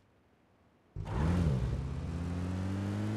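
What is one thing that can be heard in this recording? A car engine starts up and idles with a low rumble.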